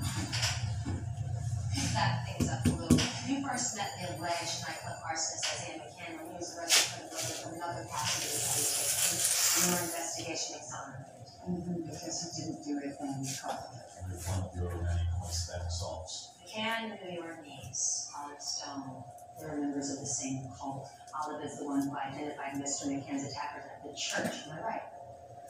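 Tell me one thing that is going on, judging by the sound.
Hands tap and rub on a tiled floor.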